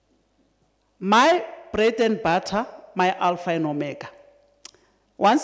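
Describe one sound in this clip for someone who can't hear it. A middle-aged woman speaks calmly into a microphone, reading out.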